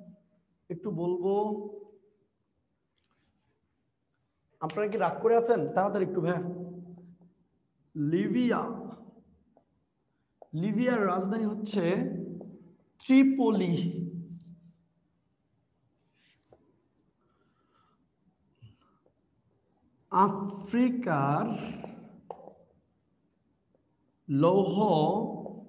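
A young man speaks calmly in bursts, as if teaching.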